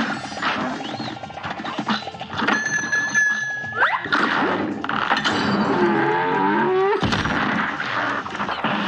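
Bullets hit a boss with popping impacts.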